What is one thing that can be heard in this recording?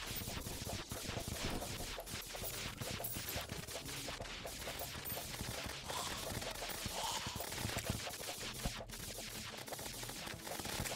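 Rapid video game blasts and impact sounds crackle without pause.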